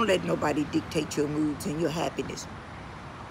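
A middle-aged woman speaks calmly close to the microphone.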